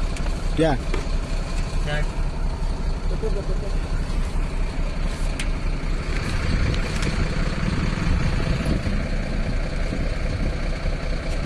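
A woman speaks briefly from outside a truck window.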